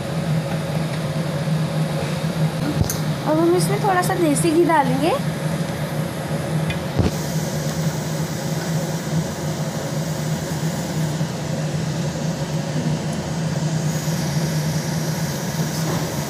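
A gas burner hisses steadily under a pan.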